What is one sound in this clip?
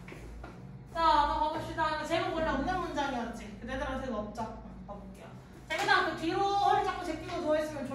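A young woman speaks calmly through a face mask, close by.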